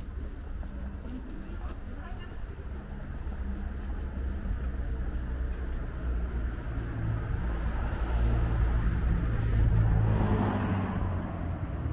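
Footsteps tap on a pavement outdoors.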